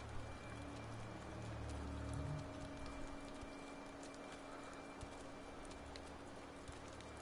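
Leaves rustle as something pushes slowly through dense bushes.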